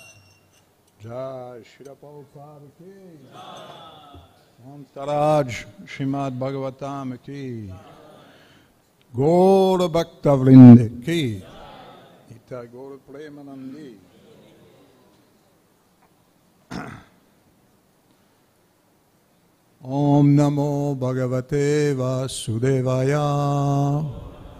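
A man sings slowly and calmly into a microphone, with pauses.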